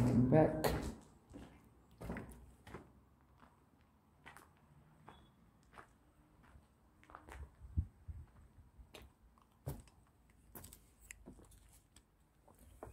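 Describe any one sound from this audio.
Footsteps crunch on a gritty stone floor.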